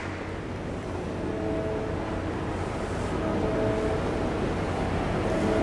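A large handbell choir rings a melody outdoors.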